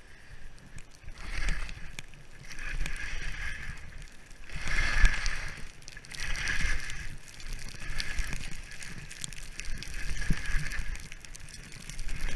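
Skis hiss and scrape over snow.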